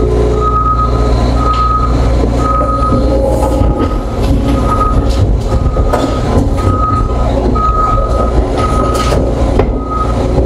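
Excavator tracks clank and squeal as the machine crawls along.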